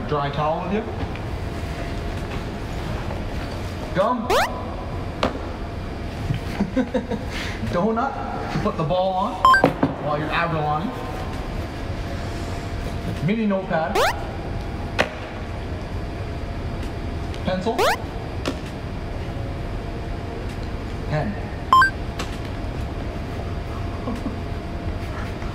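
A bag's contents rustle as a man rummages through them.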